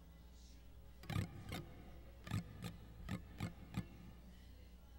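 An acoustic guitar plays sharp, percussive strums through loudspeakers.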